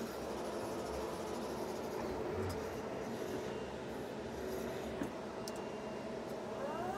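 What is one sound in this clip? A forklift engine hums steadily as the forklift rolls slowly forward indoors.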